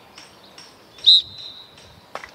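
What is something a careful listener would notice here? A referee's whistle blows once, sharply.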